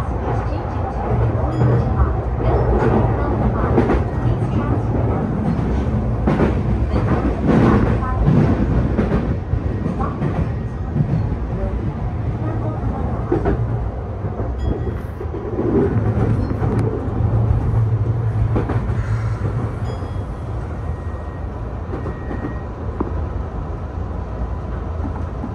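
A train rumbles steadily along the tracks, its wheels clattering over rail joints.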